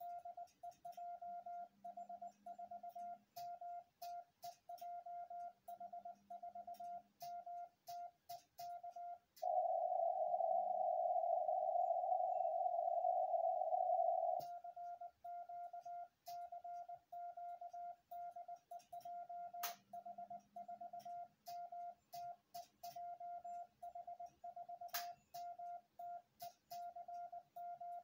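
A radio sends a steady-pitched morse code tone in quick, uneven beeps.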